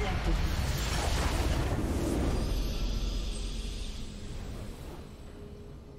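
A large crystal explodes with a deep rumbling boom.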